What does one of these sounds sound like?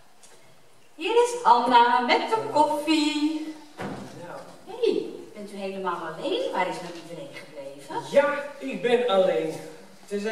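An older woman speaks with animation.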